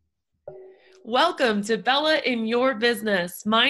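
A young woman speaks cheerfully and with animation close to a microphone.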